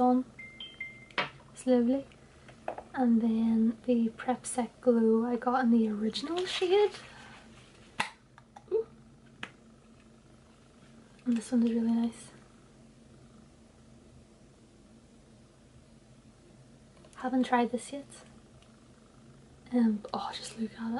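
A young woman talks casually and close up, with pauses.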